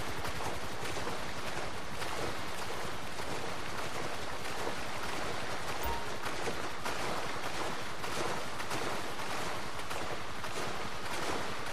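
Water splashes and hisses against a speeding boat.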